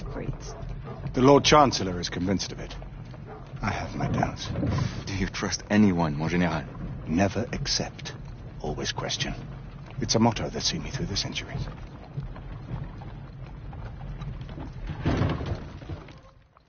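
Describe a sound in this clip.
A man speaks in a low, serious voice close by.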